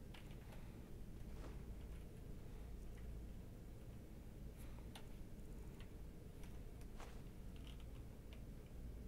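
Soft interface clicks tick now and then as menu items are chosen.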